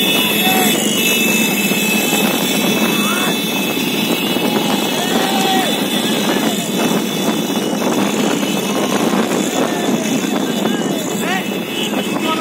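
A large crowd shouts and cheers outdoors.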